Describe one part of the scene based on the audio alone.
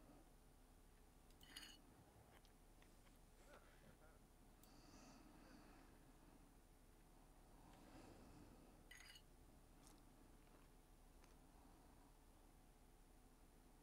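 Cutlery clinks softly on a plate.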